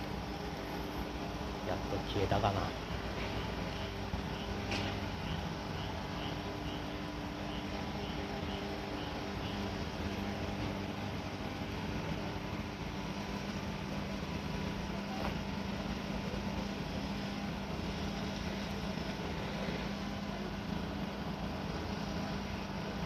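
A fire engine's motor idles with a steady low hum.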